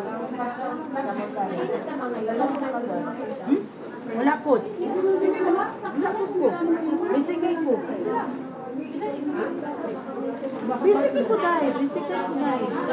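Several women talk and chat nearby, overlapping one another.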